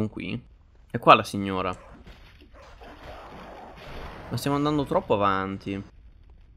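A blade slashes with a sharp swish.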